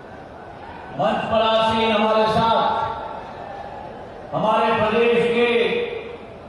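A man speaks forcefully through a loudspeaker.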